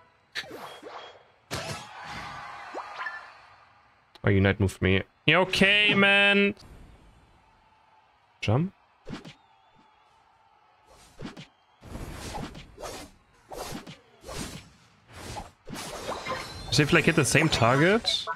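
Game attack effects whoosh and zap.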